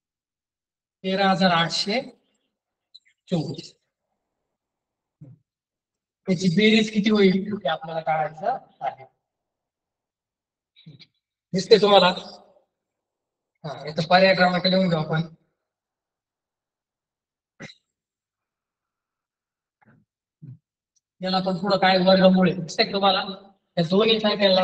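A man speaks in short bursts, calmly explaining, close by.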